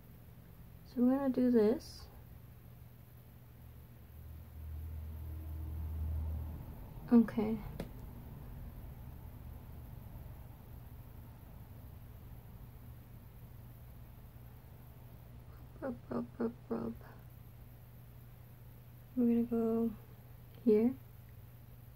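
A young woman speaks calmly close by in short bursts.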